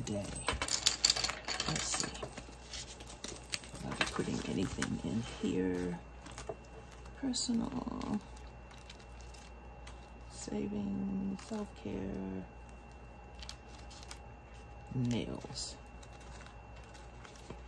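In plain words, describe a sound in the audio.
Paper pages rustle and flip as a planner is handled.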